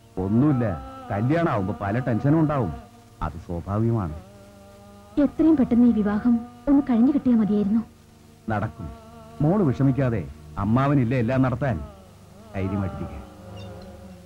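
A middle-aged man speaks firmly nearby.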